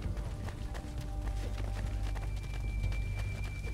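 Footsteps thud quickly across creaking wooden boards.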